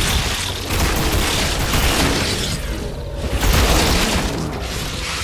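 Electric blasts crackle and hiss.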